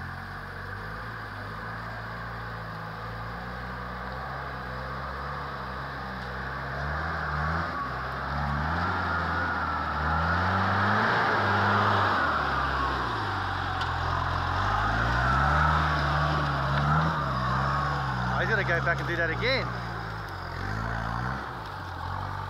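An off-road vehicle's engine revs hard, rising and falling in pitch.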